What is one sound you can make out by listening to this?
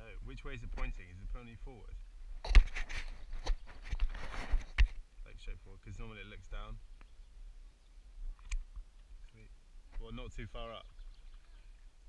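A man talks calmly nearby, outdoors on open water.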